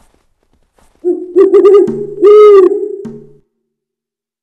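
A walrus gives a loud, deep, honking bellow.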